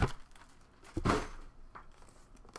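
A metal case clatters as it is set down.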